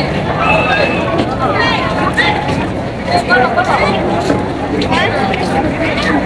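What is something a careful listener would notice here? A crowd of men and women chatters and calls out nearby outdoors.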